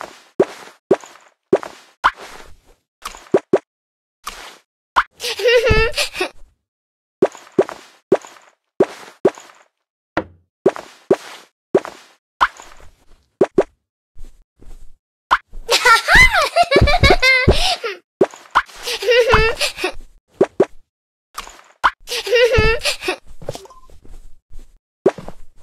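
Short game chimes and pops sound as outfits change.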